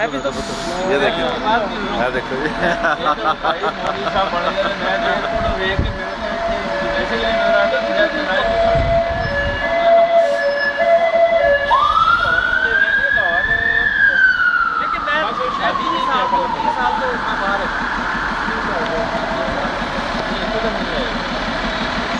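Several middle-aged men talk with one another up close.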